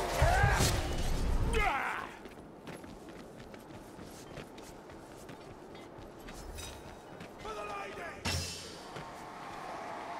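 Footsteps crunch quickly over rough stone.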